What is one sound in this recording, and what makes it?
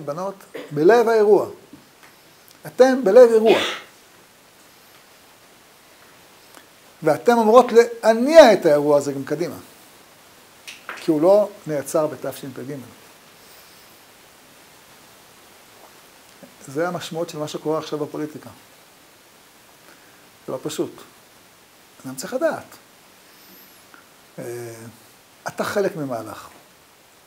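An elderly man speaks with animation in bursts, with pauses between phrases, close to a microphone.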